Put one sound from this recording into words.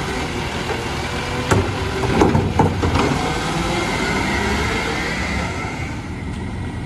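A garbage truck's engine rumbles and whines steadily nearby.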